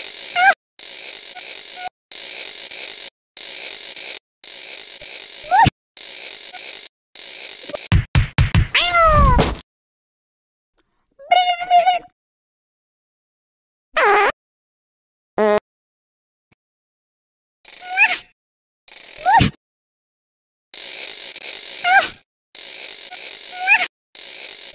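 A cartoon cat snores loudly in short, repeated bursts.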